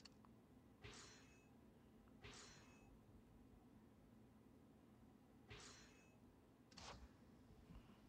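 Short bright chimes ring out as game menu options are selected.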